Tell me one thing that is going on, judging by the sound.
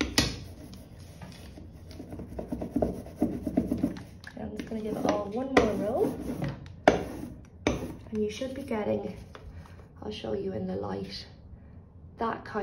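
Paper peels away from a block.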